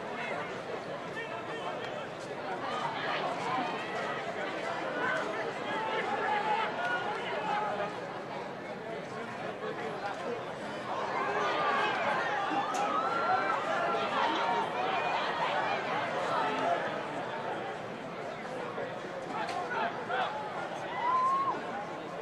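A large crowd cheers and roars in a stadium, swelling at times.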